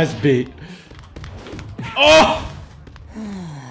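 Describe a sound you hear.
A body thuds onto a hard floor.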